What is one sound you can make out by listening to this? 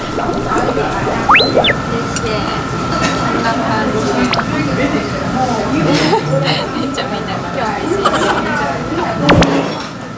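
Chopsticks clink against a metal bowl.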